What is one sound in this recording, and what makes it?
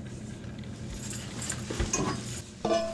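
A heavy iron pan scrapes and clanks on a wooden counter.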